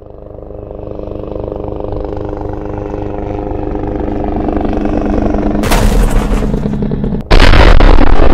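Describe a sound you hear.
A helicopter's rotor and engine drone and grow louder.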